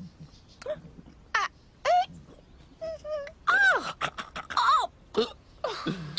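A cartoon woman mumbles and exclaims in a high, animated voice.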